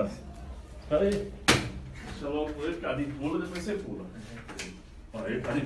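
Young men talk loudly and with animation close by.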